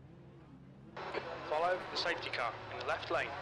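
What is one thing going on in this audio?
Race car engines roar loudly as cars accelerate away.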